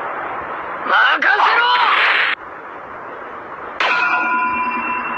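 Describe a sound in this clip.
Arcade fighting game effects of punches and blasts crash loudly.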